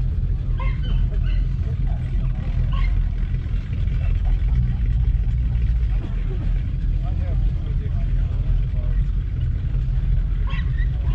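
People chatter faintly in the distance outdoors.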